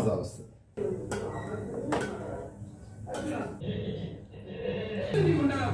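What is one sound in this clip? A metal spoon scrapes and clinks against a steel pot.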